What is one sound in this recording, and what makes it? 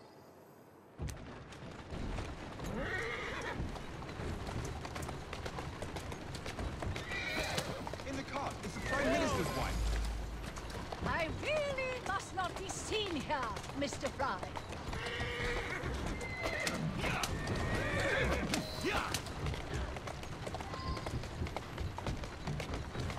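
A horse-drawn carriage rumbles and clatters quickly over cobblestones.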